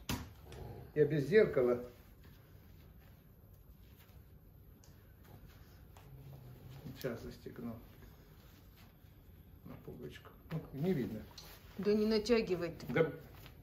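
An elderly man speaks calmly, close by, in short bursts with pauses.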